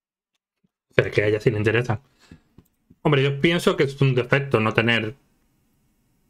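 A man speaks with animation into a microphone, close up.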